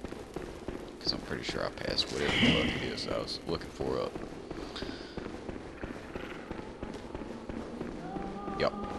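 Footsteps run quickly over a stone floor.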